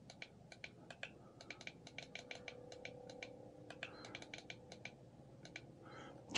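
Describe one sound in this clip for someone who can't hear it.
Small buttons click as fingers press them.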